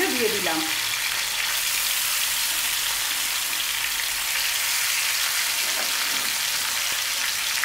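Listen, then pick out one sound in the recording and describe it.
Fish sizzles and crackles steadily in hot oil.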